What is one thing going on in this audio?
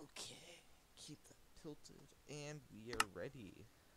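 A game menu button clicks once.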